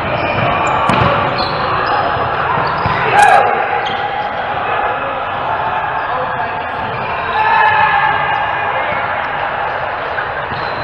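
A volleyball is struck with a sharp slap that echoes around a large gym.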